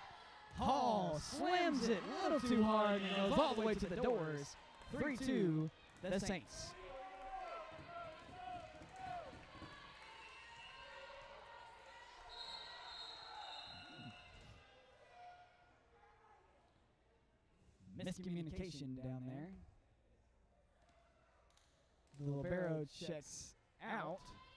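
Young women shout and cheer loudly in an echoing gym.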